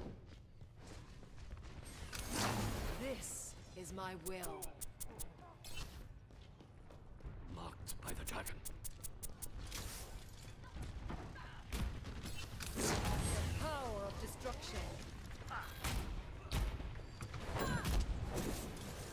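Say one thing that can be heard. Gunfire and game effects clatter in quick bursts.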